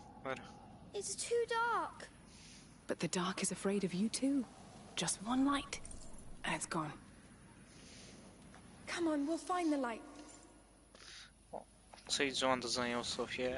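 A young boy speaks quietly and fearfully.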